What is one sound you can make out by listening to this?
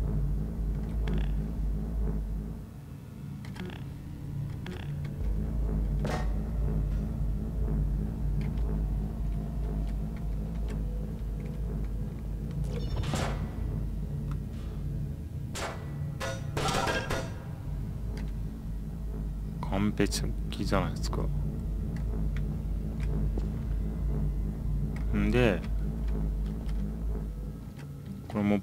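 A device hums with a low steady drone.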